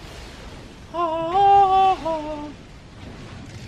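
A magical chime rings as glowing feathers are collected.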